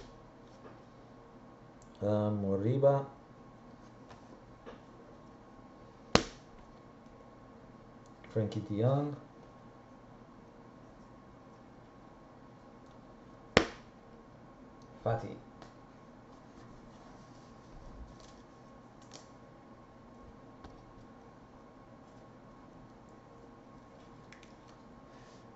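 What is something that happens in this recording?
Trading cards slide and rustle softly between fingers.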